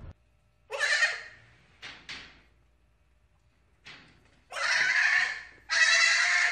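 A young goat bleats loudly and repeatedly, close by.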